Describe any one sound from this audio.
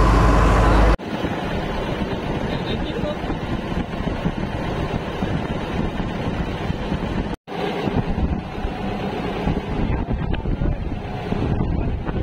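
Water rushes and splashes against a moving boat's hull.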